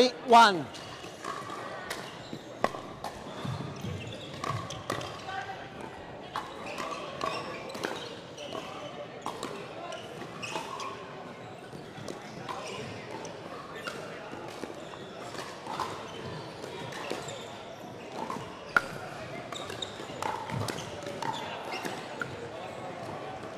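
Paddles strike a plastic ball with sharp pops, back and forth.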